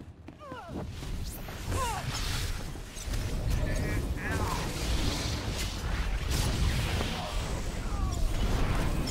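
Energy blasts crackle and burst.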